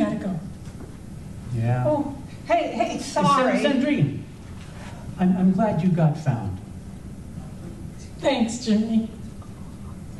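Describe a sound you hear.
A woman speaks with animation in an echoing room.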